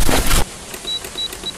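A bomb keypad beeps as buttons are pressed.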